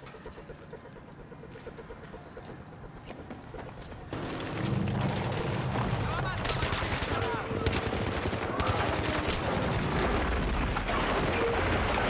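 Fires crackle and roar.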